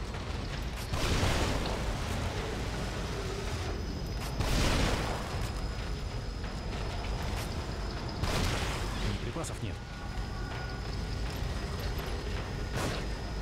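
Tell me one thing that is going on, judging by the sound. A shotgun fires loudly several times.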